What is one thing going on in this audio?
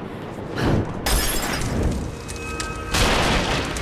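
A fire bursts into flame with a loud whoosh.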